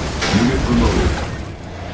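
Gunfire rattles in a battle.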